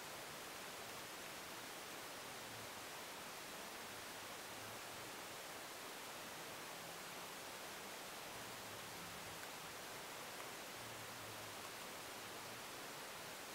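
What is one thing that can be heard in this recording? A woman talks quietly and calmly close by.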